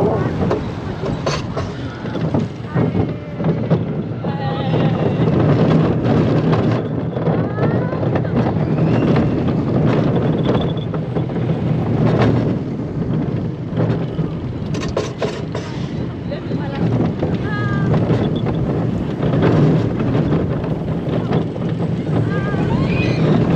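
A roller coaster car rumbles and rattles along its track.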